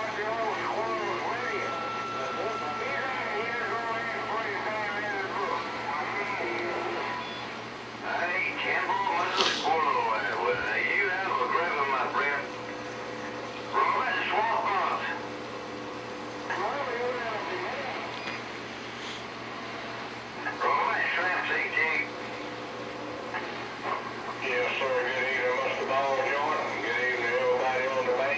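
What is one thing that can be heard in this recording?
Radio static hisses steadily.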